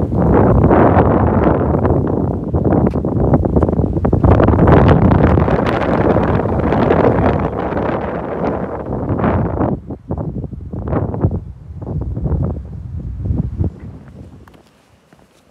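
Strong wind gusts and roars against the microphone outdoors.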